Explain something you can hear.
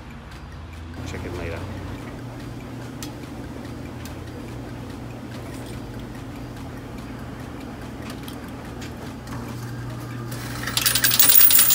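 A machine hums as it draws in a banknote.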